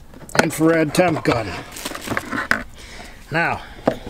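A device is lifted out of a plastic case with a rattle.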